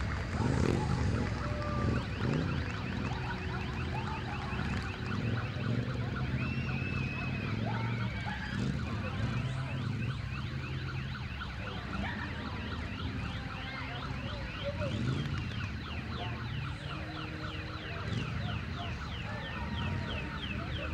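A crowd of men talk and shout outdoors at a distance.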